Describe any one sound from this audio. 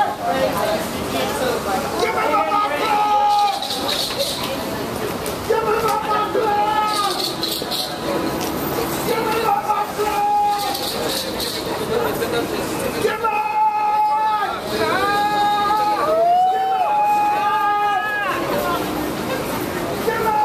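A crowd of people murmurs and chatters outdoors on a busy street.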